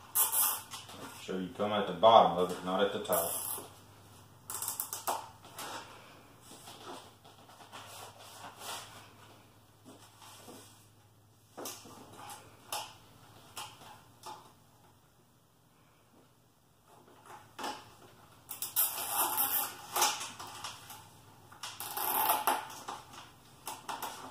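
Plastic crates rattle and knock.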